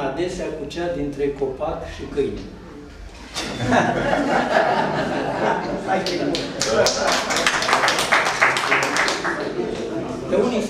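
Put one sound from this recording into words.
An elderly man speaks calmly and close by, reading aloud.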